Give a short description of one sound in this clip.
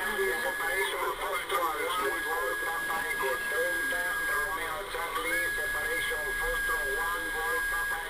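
A radio receiver plays a crackly, distorted transmission through its small speaker.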